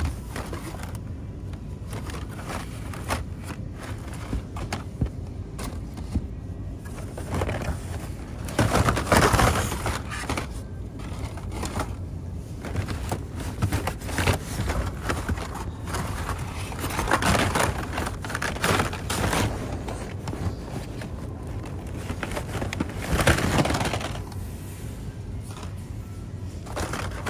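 Plastic toy packages rustle and clatter as a hand digs through them.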